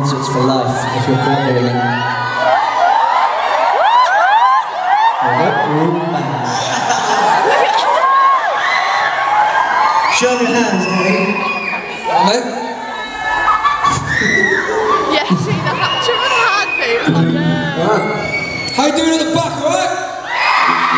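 A man sings loudly into a microphone over a loudspeaker system in a large hall.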